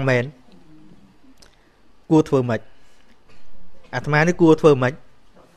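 A man speaks calmly into a close microphone, in short phrases.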